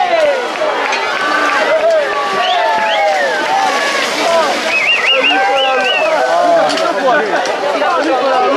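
A large crowd outdoors shouts and cheers excitedly.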